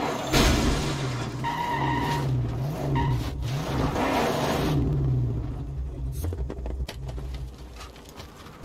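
A car engine roars and rumbles.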